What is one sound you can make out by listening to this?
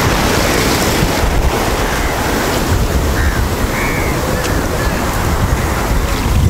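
Waves wash and foam onto a shore.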